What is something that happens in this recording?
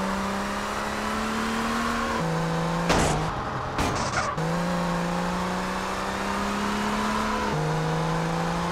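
A car engine hums steadily, its pitch shifting up and down with gear changes.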